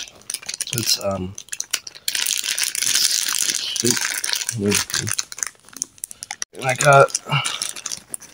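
Plastic packaging crinkles as it is handled.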